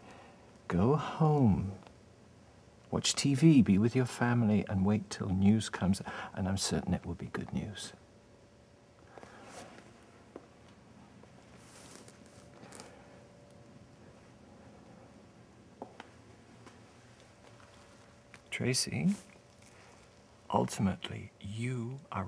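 A man speaks quietly in reply.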